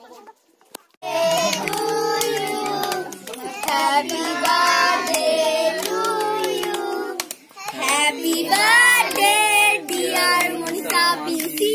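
A group of children and a woman sing together loudly and close by.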